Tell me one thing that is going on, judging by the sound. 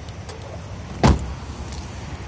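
A car door thuds shut.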